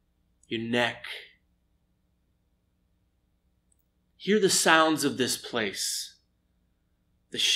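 A middle-aged man speaks calmly and close to the microphone, in short phrases with pauses.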